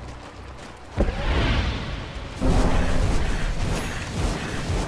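Fiery spell effects burst and crackle loudly.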